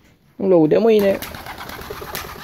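A pigeon flaps its wings loudly in take-off.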